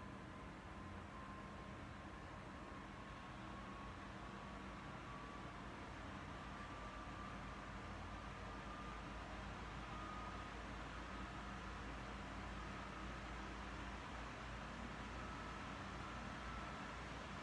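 Rushing wind from a video game plays steadily through a television speaker.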